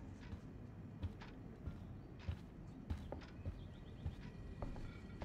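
Footsteps walk steadily across a hard floor.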